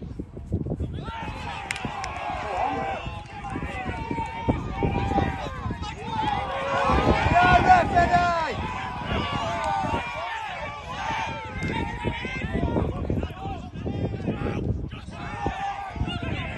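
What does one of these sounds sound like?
A crowd of men and women cheers and shouts outdoors.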